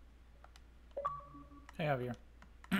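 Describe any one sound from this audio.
A short electronic notification chime sounds.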